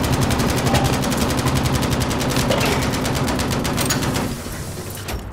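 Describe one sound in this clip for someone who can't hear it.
Rapid gunfire rattles nearby.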